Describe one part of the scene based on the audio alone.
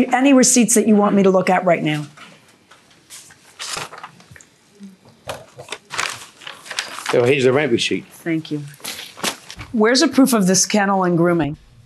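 A woman speaks firmly and clearly into a microphone.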